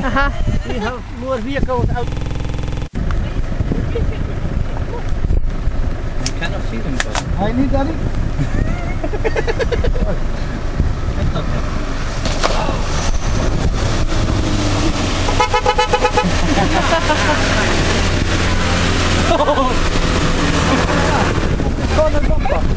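A four-wheel-drive engine revs as it climbs through mud.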